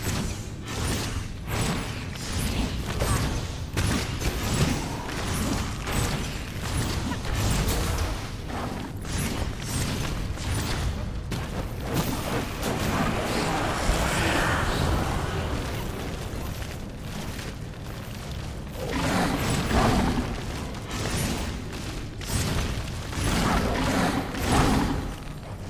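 Blades clash and strike in quick, repeated blows.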